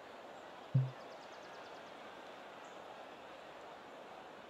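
A golf club strikes a ball with a sharp thwack.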